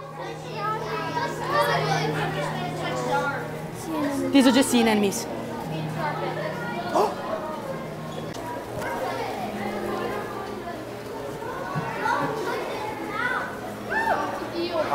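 Children talk and call out excitedly nearby.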